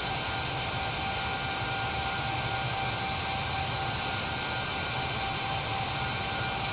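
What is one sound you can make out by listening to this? A jet airliner's engines roar and whine steadily.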